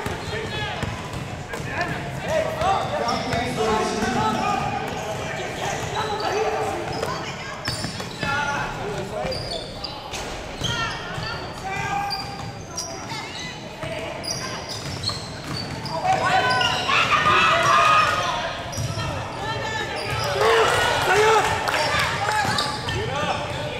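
Children and adults shout and call out in a large echoing gym.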